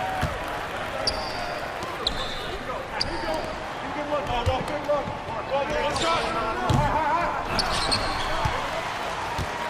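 Sneakers squeak sharply on a basketball court.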